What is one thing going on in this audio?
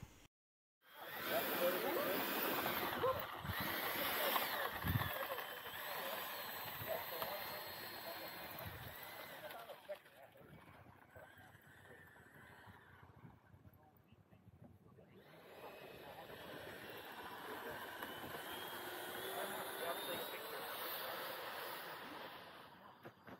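A small jet engine whines loudly, its pitch rising and falling, then fading into the distance.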